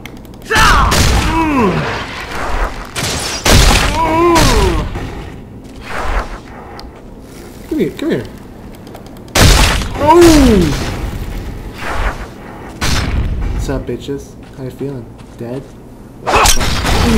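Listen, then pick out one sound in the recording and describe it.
Swords clash and strike in combat.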